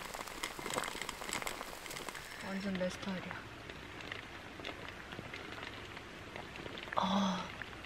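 A pot of soup bubbles and simmers.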